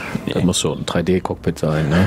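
A man laughs, close to a microphone.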